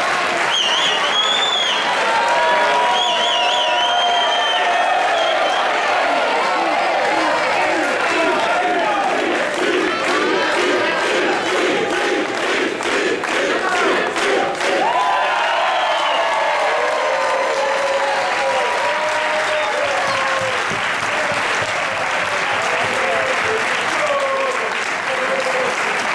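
A large crowd shouts, whistles and chants loudly in an echoing hall.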